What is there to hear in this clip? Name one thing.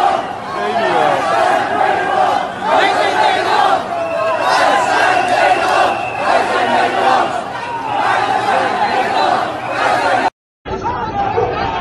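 A large crowd of men and women shouts and chants loudly outdoors.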